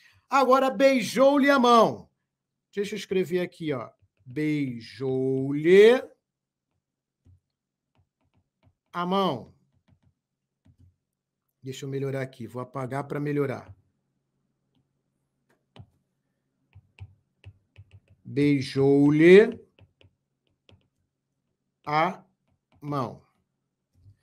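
A man speaks calmly into a microphone, explaining with pauses.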